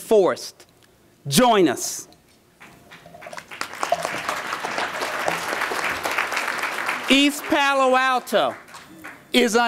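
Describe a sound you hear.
A man speaks emphatically into a microphone in a large hall.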